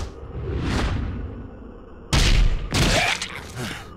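A body slams heavily onto a hard floor.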